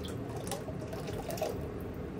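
Oil glugs as it pours from a plastic bottle.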